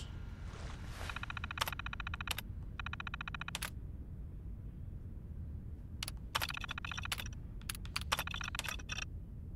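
A computer terminal clicks and chirps rapidly as text types out.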